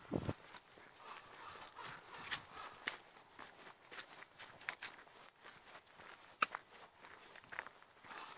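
Footsteps crunch on gravel and dry leaves.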